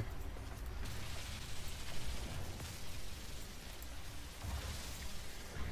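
A laser beam hisses steadily.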